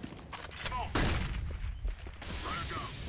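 A stun grenade bangs.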